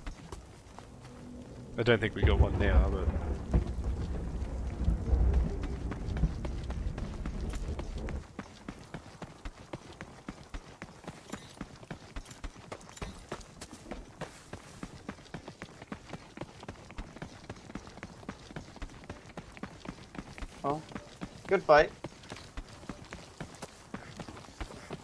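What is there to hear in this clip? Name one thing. Footsteps crunch steadily along a path.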